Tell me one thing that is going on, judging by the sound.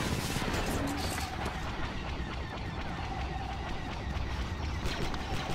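Laser blasters fire in bursts of shots.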